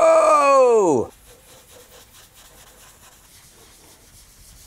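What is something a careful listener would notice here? A dauber softly rubs dye onto leather.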